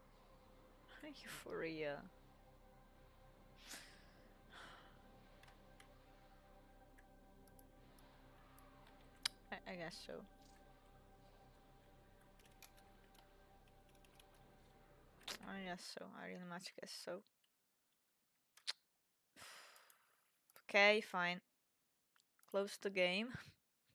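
A young woman speaks calmly into a close microphone, in short bursts.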